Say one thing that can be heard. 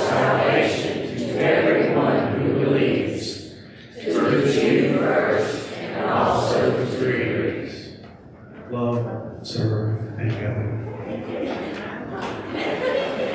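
A man and a woman sing together through microphones in a room with some echo.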